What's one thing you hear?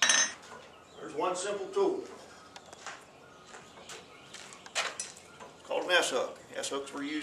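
A middle-aged man speaks calmly close by.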